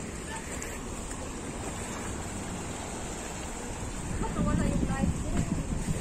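Waves splash against rocks.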